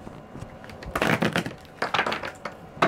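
A deck of cards is shuffled by hand.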